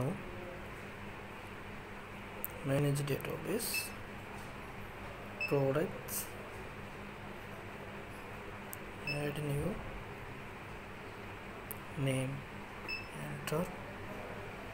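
A finger presses buttons on a keypad with soft clicks.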